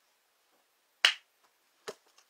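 A woman claps her hands once sharply.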